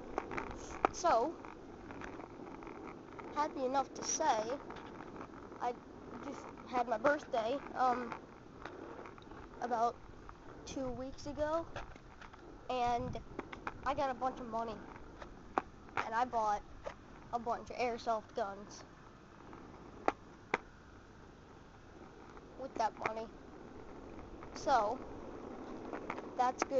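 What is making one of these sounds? A child talks close to the microphone in short bursts.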